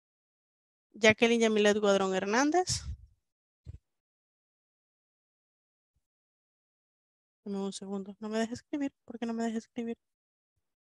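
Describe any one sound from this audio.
A young woman speaks through an online call with a headset microphone, in short phrases.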